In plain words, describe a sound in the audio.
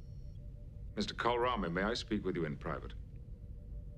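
A man speaks in a deep, measured voice, close by.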